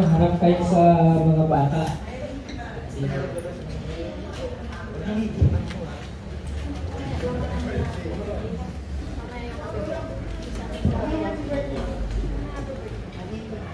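A man speaks into a microphone, heard through a loudspeaker in a room.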